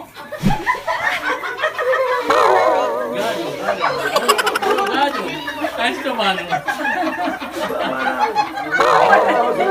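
A group of men and women sing together loudly and cheerfully.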